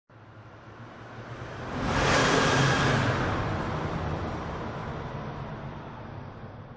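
A rally car engine roars as the car speeds closer, passes close by and fades away.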